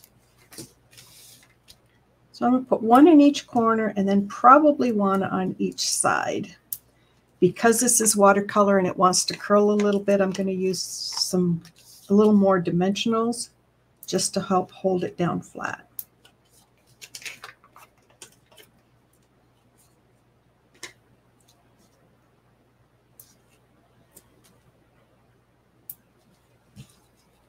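Card stock rustles and taps against a table as it is handled.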